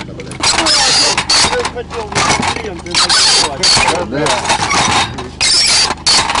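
Metal shells clink together as they are handled.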